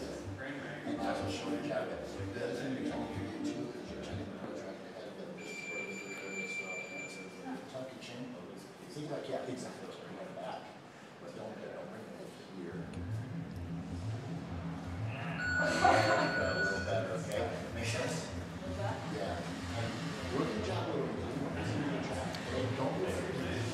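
A man talks calmly nearby in an echoing room.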